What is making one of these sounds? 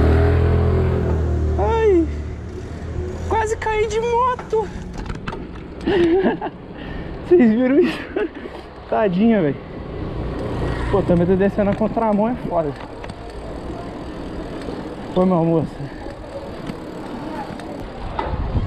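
Mountain bike tyres roll on asphalt.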